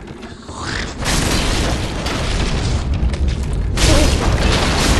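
Fire bursts and crackles with a loud whoosh.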